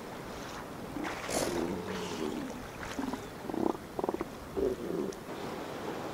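Elephant seals grunt and bellow in low, throaty bursts.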